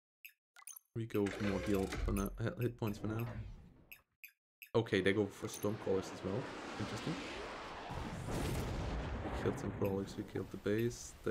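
A young man talks into a microphone close by.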